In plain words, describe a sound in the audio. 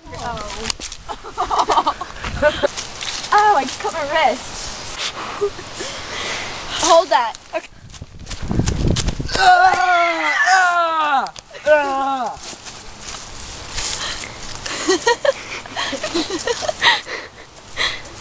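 Young women talk and laugh close by with animation.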